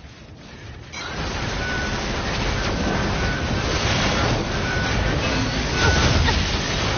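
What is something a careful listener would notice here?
Weapons clash and energy blasts roar in a fight with machines.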